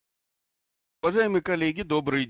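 An elderly man speaks calmly into a headset microphone, heard over an online call.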